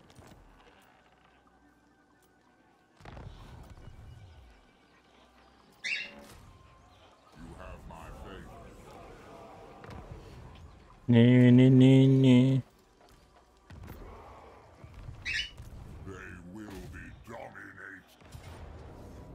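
Game interface sounds chime as menus open and close.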